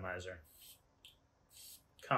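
A man sprays a perfume bottle several times.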